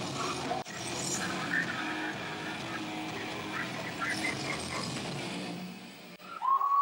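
A rock band plays loudly in a crowded, echoing room.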